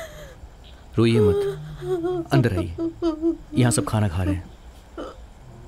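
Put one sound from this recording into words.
A woman cries out in distress.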